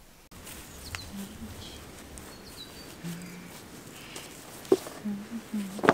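A blanket rustles as it is spread onto grass.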